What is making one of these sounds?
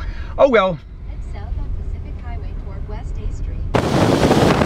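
A man talks calmly close by inside a car.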